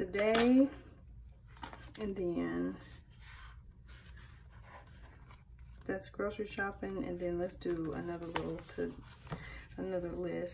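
Stiff paper pages rustle and flap as they are turned.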